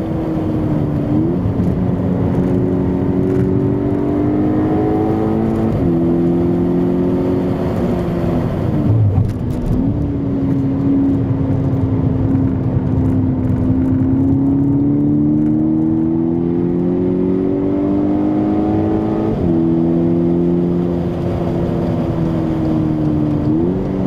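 A car engine roars loudly from inside the car, revving up and dropping sharply as the gears shift.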